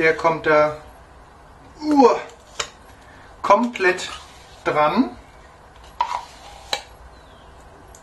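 A spoon scrapes and taps against a plastic mixing bowl.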